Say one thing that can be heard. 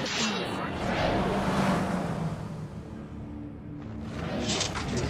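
A magic circle hums with a deep rumble.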